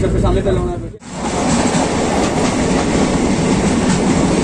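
A passing train rumbles and clatters steadily.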